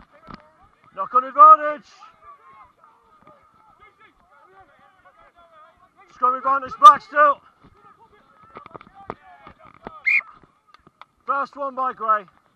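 Young men shout loudly nearby on an open field.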